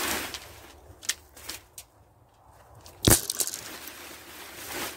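Soil crumbles and roots snap as plants are pulled up.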